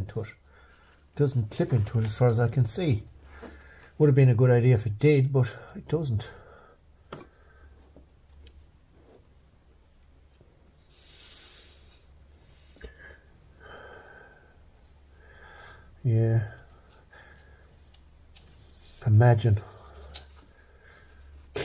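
Small plastic connectors click as they are pulled loose and pushed into place.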